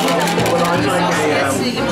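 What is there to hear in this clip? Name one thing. Liquid pours through a metal strainer into glasses.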